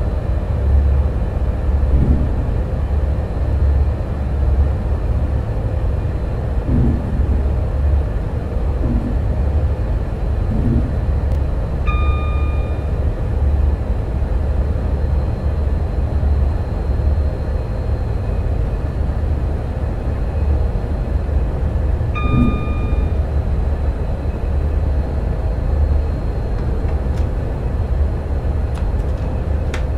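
A train engine rumbles low and steady.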